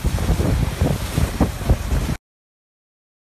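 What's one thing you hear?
Water splashes and churns beside a moving boat.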